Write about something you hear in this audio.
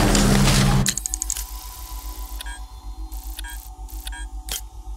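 Soft menu clicks blip repeatedly.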